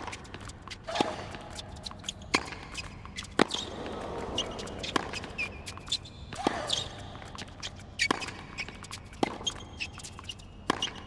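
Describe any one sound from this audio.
A tennis ball is struck back and forth with rackets in a sharp, regular rally.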